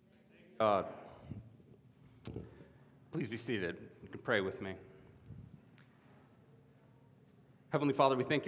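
A man speaks through a microphone in an echoing hall, with pauses.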